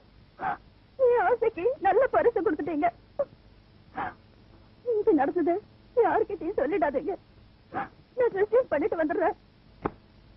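A young woman speaks tearfully and sobs close by.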